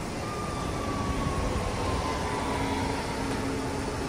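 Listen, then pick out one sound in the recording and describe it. A bus engine rumbles as a bus drives past.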